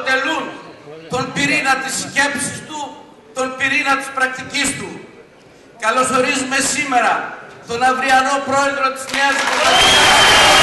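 A middle-aged man speaks forcefully into a microphone in a large hall.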